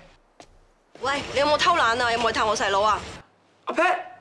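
A young woman talks on a phone with a questioning tone.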